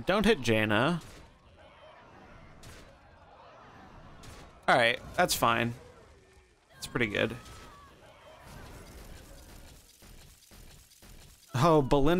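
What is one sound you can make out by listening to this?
Video game sound effects of blows and magical blasts ring out.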